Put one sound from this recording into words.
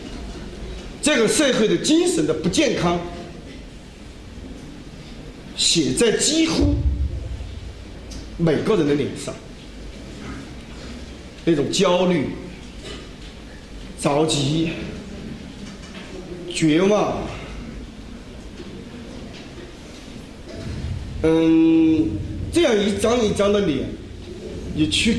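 A middle-aged man speaks into a microphone in bursts, with pauses, in a reverberant hall.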